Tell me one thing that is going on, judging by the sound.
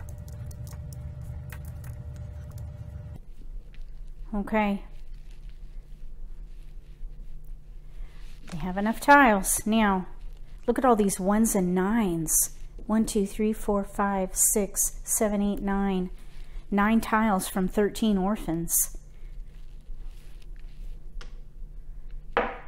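Plastic tiles click and clack against each other.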